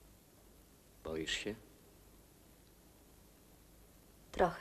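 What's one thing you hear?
A man speaks briefly in a low voice close by.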